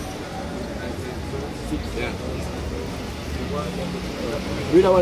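A crowd of men chatter and call out nearby.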